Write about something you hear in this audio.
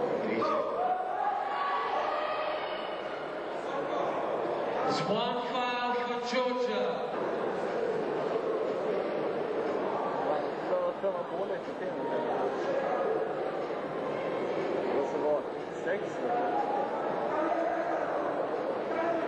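A crowd of men shouts and cheers.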